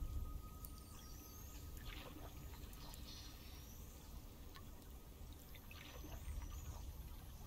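A paddle splashes through water.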